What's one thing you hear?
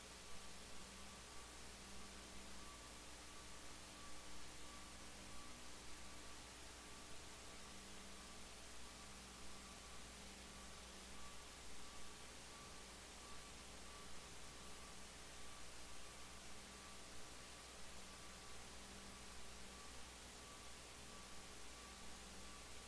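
A man speaks through a loudspeaker in a large, echoing hall.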